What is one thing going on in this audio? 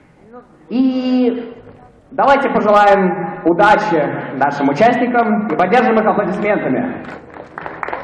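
A young man announces through a microphone over loudspeakers in an echoing hall.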